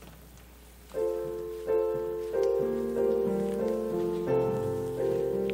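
A small group of people sings together.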